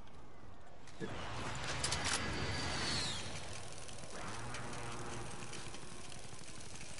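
A rope winch whirs steadily, hauling a load upward.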